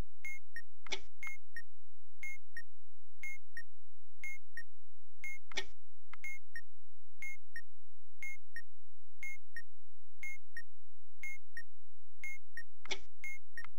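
An electronic timer beeps in a steady rhythm, twice each second.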